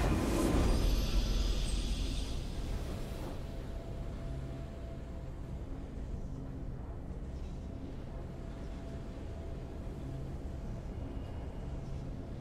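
Soft, low music plays steadily.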